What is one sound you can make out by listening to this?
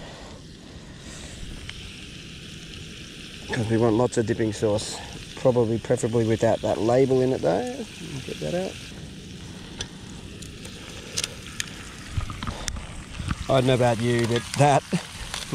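Metal tongs scrape and clink against a cast-iron pan.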